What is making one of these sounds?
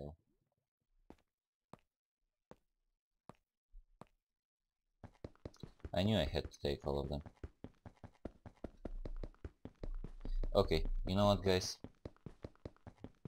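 Footsteps tap in a quick, even rhythm while climbing a ladder.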